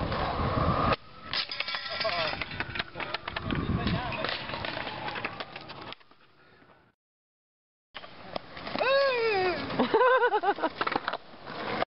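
A skateboard clatters and smacks onto concrete.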